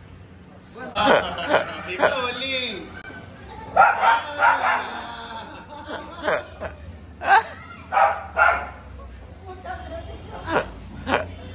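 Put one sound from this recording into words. A woman laughs and shrieks playfully.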